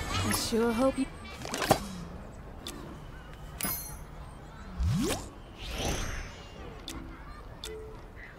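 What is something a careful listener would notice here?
Short electronic menu chimes and whooshes play.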